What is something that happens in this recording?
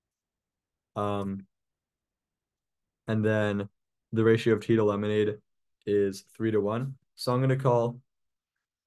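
A young man speaks calmly into a microphone, explaining.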